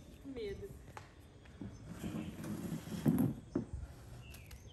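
Young women laugh and talk close by.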